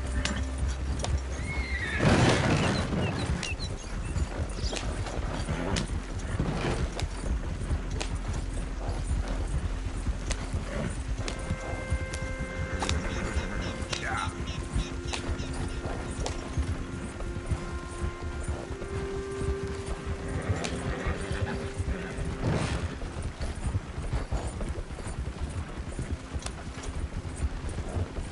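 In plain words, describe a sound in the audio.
Horse hooves clop steadily on dirt.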